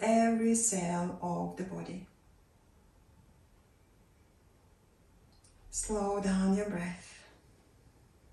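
A woman speaks calmly and slowly, close by, in two short phrases with pauses between.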